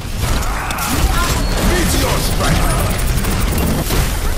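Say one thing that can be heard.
Game explosions and impacts crackle and boom loudly.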